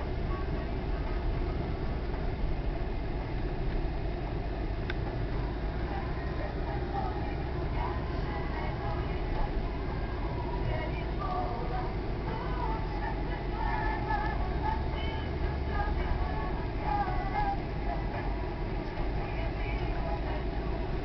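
A car engine hums steadily from inside the car as it drives along.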